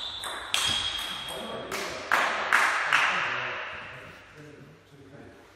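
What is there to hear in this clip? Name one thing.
Sharp clicks echo around a large hall.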